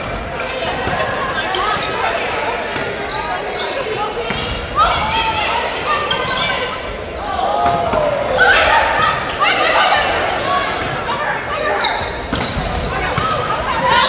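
Players call out and shout to each other during the rally.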